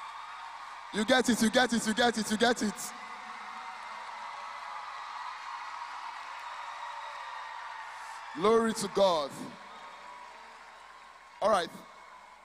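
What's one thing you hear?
A crowd sings and cheers loudly in short bursts.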